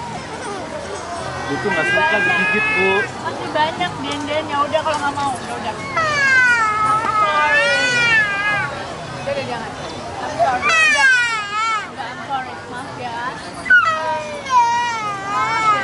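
A young woman speaks softly and soothingly nearby.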